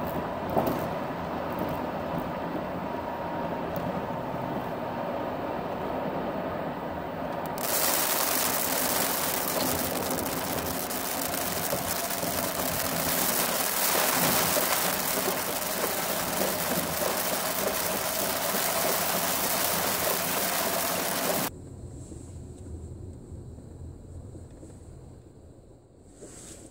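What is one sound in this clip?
A car drives on a wet road, heard from inside the car.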